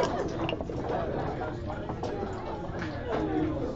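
Dice clatter onto a wooden board.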